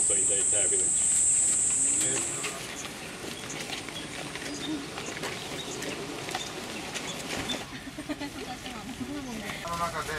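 Men and women chat casually nearby outdoors.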